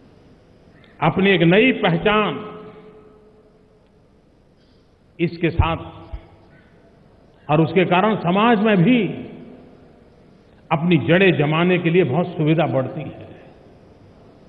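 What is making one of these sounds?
An elderly man speaks forcefully into a microphone in short bursts.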